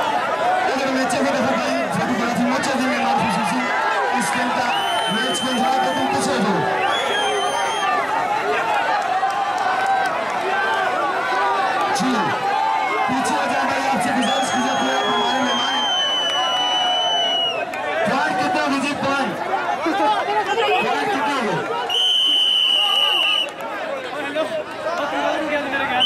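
A large outdoor crowd chatters and cheers loudly.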